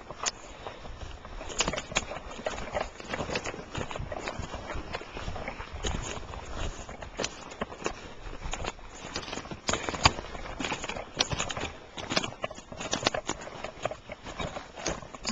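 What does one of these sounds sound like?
A walking stick knocks against the ground.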